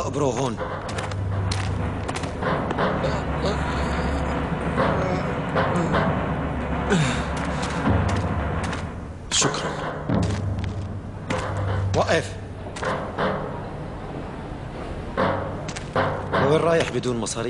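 An older man speaks in a low, stern voice.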